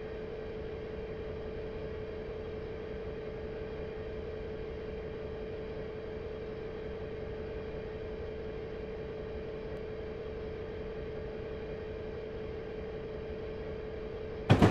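A locomotive engine hums steadily.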